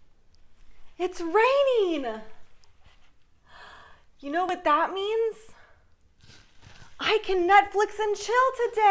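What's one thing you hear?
A young woman talks nearby with animation.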